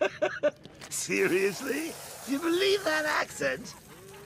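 Gel sprays with a hiss.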